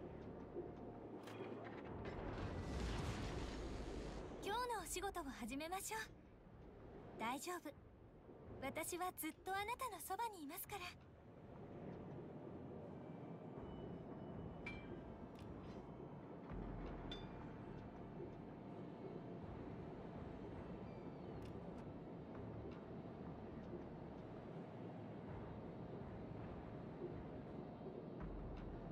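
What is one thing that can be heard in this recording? A ship's engine hums steadily over the sea.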